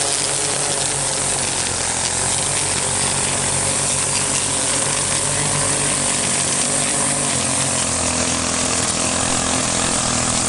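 A string trimmer whines steadily nearby as it cuts grass.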